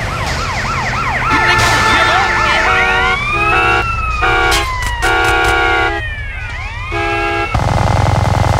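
Police sirens wail and rise and fall.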